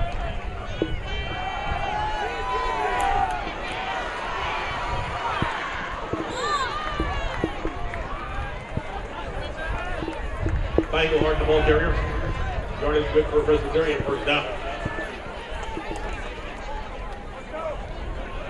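A crowd cheers and murmurs across an open stadium.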